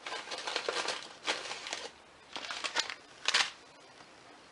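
A paper packet rustles and crinkles.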